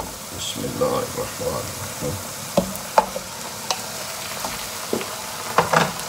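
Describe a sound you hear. Raw meat drops into a sizzling pan.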